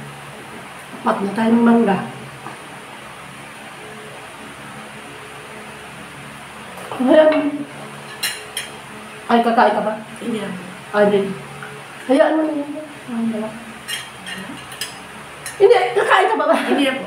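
A middle-aged woman talks casually close by.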